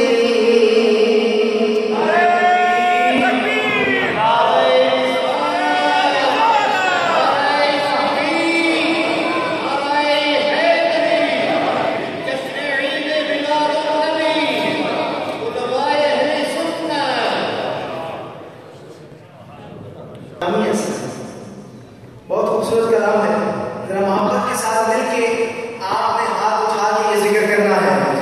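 A man sings a devotional chant into a microphone, heard through loudspeakers in a large echoing hall.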